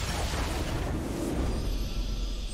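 A triumphant fanfare swells up.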